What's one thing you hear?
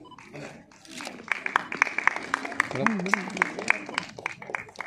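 A small crowd applauds.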